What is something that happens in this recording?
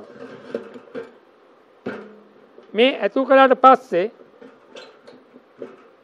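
A metal pump handle squeaks and clanks against a metal canister.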